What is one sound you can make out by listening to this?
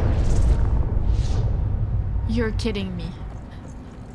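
A deep crackling energy blast rumbles loudly and fades away.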